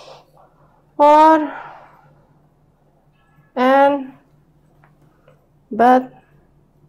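A woman speaks in short, drawn-out words, close by.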